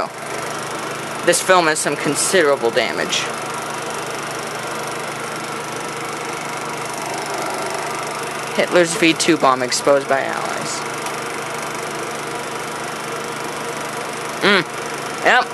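A projector's fan hums steadily.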